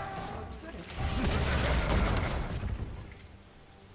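A tower crumbles and explodes with a deep rumble.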